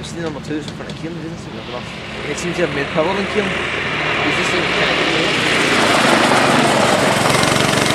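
A go-kart engine buzzes, growing louder as the kart approaches and passes close by.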